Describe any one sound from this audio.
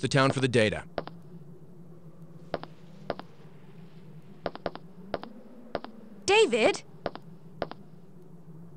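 Footsteps crunch on gravelly ground.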